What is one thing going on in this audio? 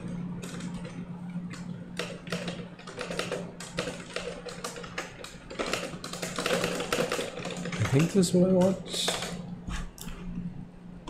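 Keys clatter quickly on a keyboard.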